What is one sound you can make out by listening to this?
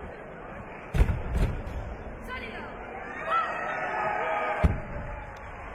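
Feet stamp hard on a mat.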